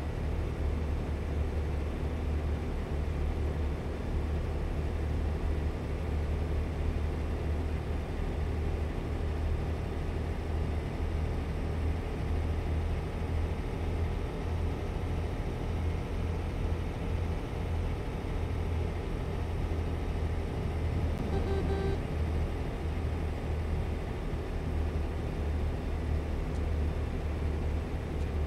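A truck engine rumbles low and steady while driving.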